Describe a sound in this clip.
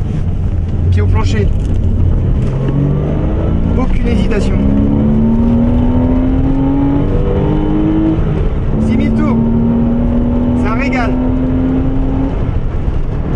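A car engine revs up, its pitch climbing through the gears.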